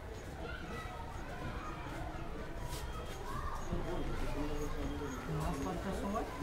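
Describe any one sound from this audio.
Several women and men talk with overlapping voices nearby.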